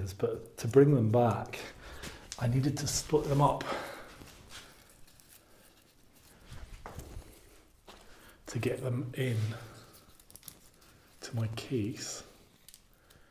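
A middle-aged man talks calmly into a clip-on microphone, close by.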